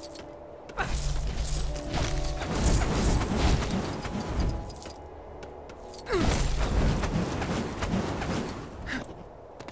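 Game blasts fire with sharp zapping bursts.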